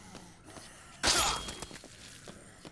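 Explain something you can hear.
A heavy blow lands with a wet thud.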